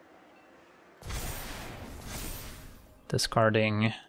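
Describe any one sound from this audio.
A magical whooshing shimmer sounds as a card is played.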